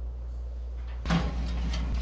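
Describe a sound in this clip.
An oven door clanks shut.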